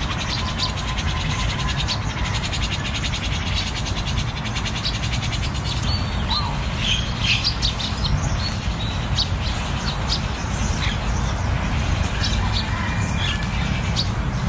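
A small bird chirps in short high calls.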